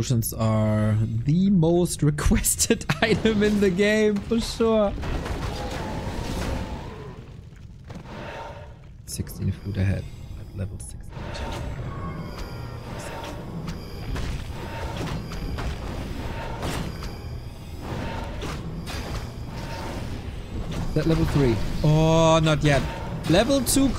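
Swords clash and spells burst in a fantasy battle.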